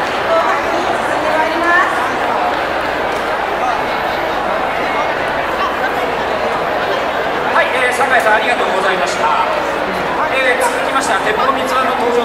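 A large crowd chatters and shouts all around.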